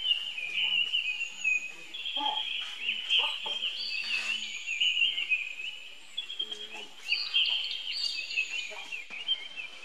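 Dry leaves rustle under a monkey's feet.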